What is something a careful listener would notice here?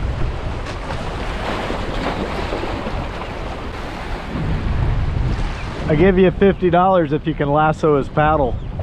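Waves splash against rocks close by.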